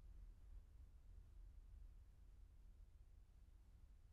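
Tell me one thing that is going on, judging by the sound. A car drives past slowly.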